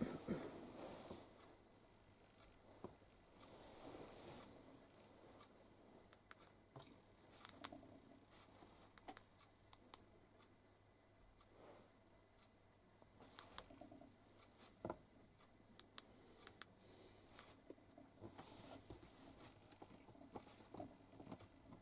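A pen scratches on paper close by.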